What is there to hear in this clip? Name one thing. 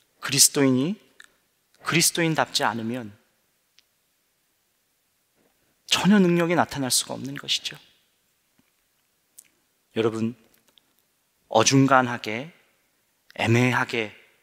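A young man speaks calmly into a microphone in short phrases with pauses.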